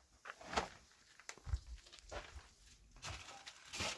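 A trowel scrapes wet plaster onto a wall.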